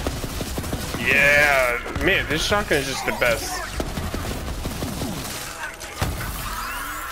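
Energy blasts burst and fizz with electric crackles.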